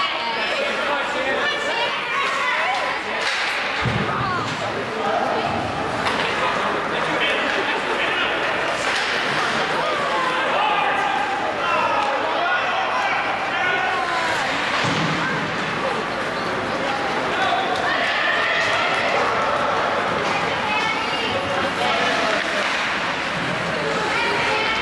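Young hockey players shout and call out across an echoing ice rink.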